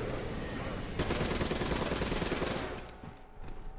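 A blast booms and crackles.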